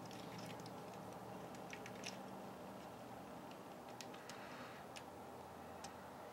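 Plastic parts click softly as a hand moves a toy figure's arm.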